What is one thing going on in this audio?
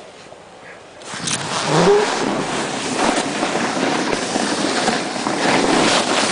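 Snow scrapes and hisses under a board sliding downhill.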